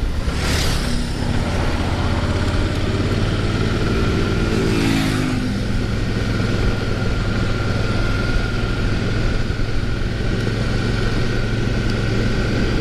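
A motorcycle engine hums steadily at close range.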